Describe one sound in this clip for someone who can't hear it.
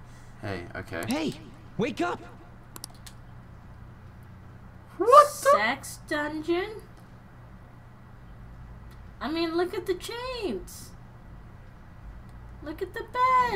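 A young woman laughs close to a microphone.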